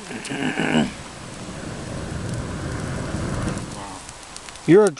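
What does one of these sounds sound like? A man blows hard on a small fire.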